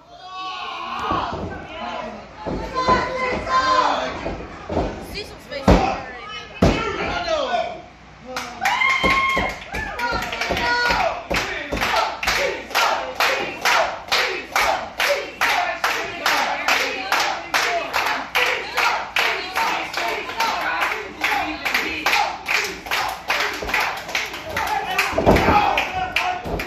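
A crowd of men and women shout and cheer loudly nearby.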